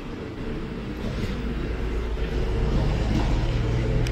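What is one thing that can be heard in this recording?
A scooter passes by on the road.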